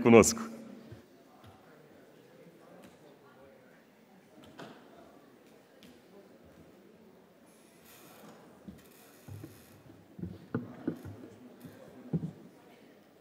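An audience murmurs quietly in a large hall.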